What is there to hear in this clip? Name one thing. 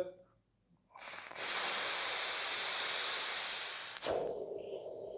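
A man inhales deeply with a long hiss.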